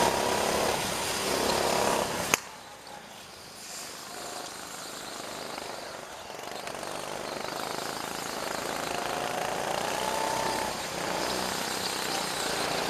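Go-kart engines whine and buzz nearby.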